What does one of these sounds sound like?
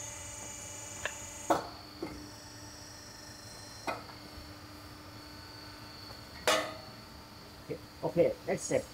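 Metal parts clank and click as a frame is clamped in a jig.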